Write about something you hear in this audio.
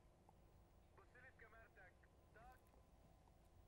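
A man speaks through a remote call connection.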